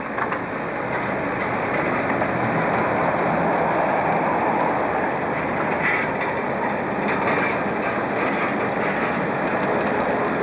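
A narrow-gauge diesel locomotive rumbles past, hauling wagons.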